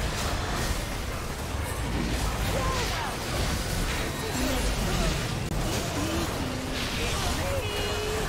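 Magic spells crackle and blast during a fierce battle.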